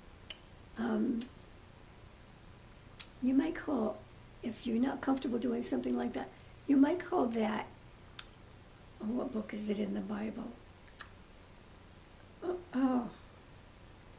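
An elderly woman speaks calmly and close by, with pauses.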